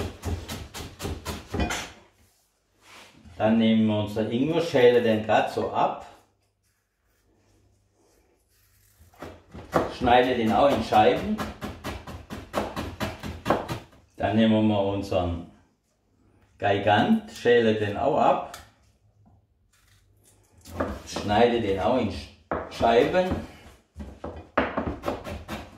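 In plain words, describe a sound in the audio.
A knife chops quickly on a cutting board.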